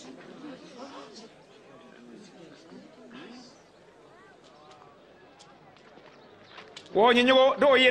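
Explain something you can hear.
A crowd of men murmurs quietly in the background.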